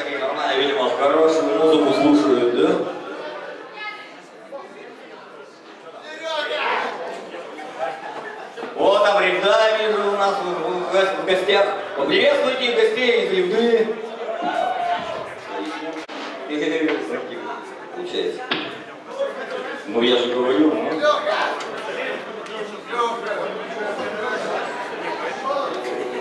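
A rock band plays loudly with electric guitars.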